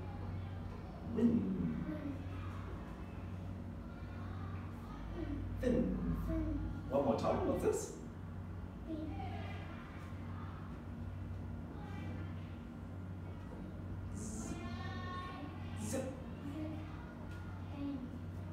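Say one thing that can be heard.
A young child answers softly.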